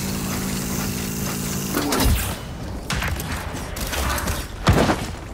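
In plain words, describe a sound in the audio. A rifle fires sharp shots.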